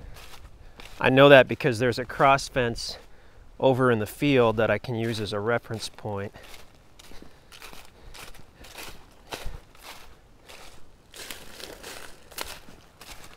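Footsteps crunch through dry leaves.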